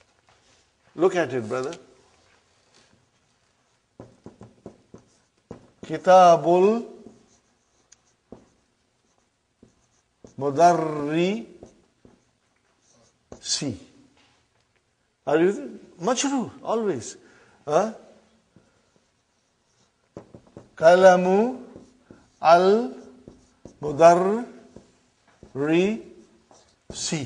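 A middle-aged man speaks slowly and clearly in short phrases, close by.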